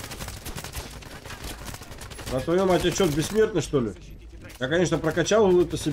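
Gunfire from a game rifle rattles in quick shots.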